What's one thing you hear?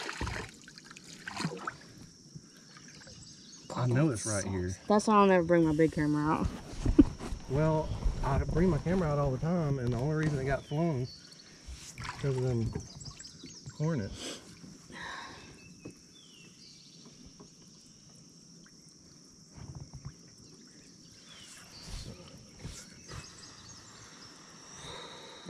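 Water laps and splashes gently around a man wading.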